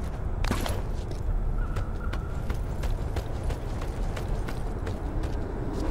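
Metal rungs clank under climbing hands and feet.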